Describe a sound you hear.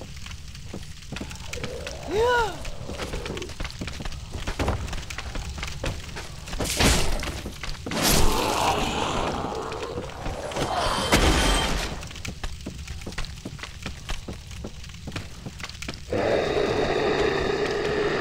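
Footsteps knock on wooden ladder rungs.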